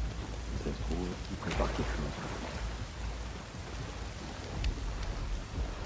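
Water sloshes as someone wades slowly through it.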